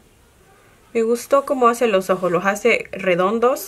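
A young woman speaks close to a microphone with animation.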